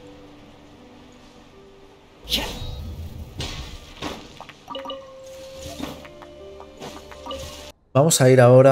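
Soft game music plays.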